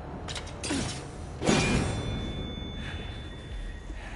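A blade swings and strikes with a sharp ringing impact.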